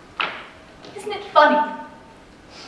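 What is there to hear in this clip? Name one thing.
A woman speaks with feeling on a stage, heard from the audience in a large hall.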